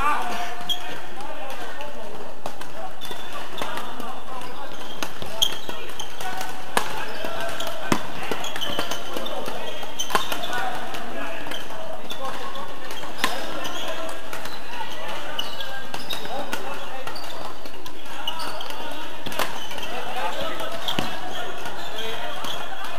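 Shoes squeak on a sports floor.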